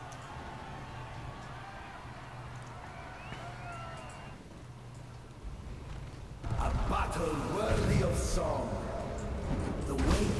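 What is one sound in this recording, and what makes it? Fire spells whoosh and crackle in bursts.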